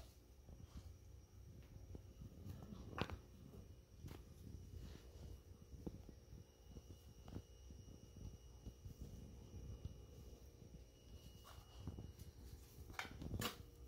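A small dog's paws patter softly on carpet.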